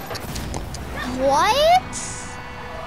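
A goal explosion booms in a video game.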